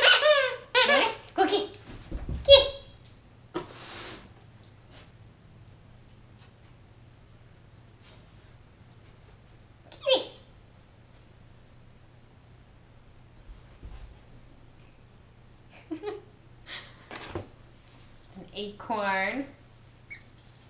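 A young woman talks playfully to a dog, close by.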